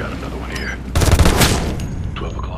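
A loud explosion booms close by, then its roar fades.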